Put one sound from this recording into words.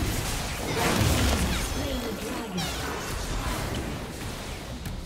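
Magical spell effects whoosh and crackle in a fast fight.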